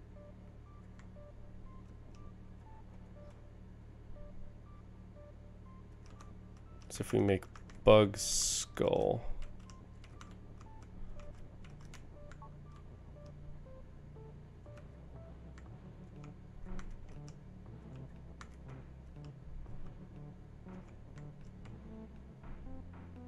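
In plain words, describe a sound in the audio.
Soft electronic game music plays with gentle tones.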